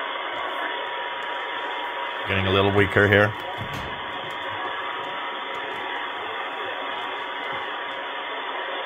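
A radio receiver hisses with steady static through a small loudspeaker.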